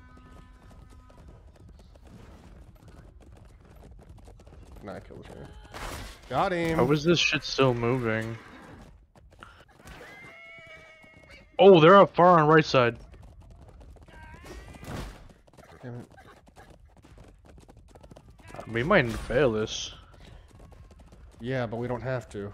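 Horse hooves pound on sand.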